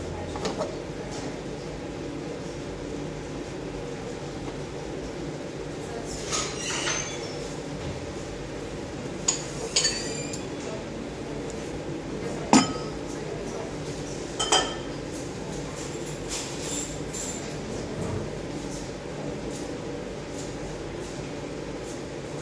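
A furnace hums steadily.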